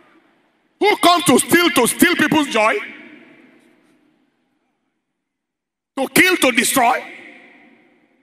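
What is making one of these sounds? A man preaches forcefully through a microphone, echoing in a large hall.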